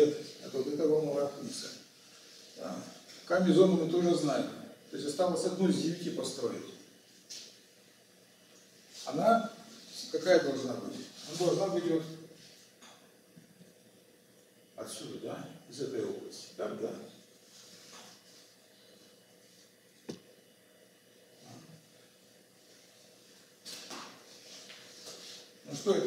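An elderly man lectures calmly in a room with a slight echo, with pauses between phrases.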